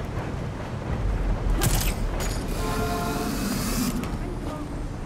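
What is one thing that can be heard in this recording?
Wind rushes loudly during a fast fall.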